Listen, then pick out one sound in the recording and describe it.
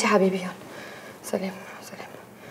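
A young woman speaks softly into a phone.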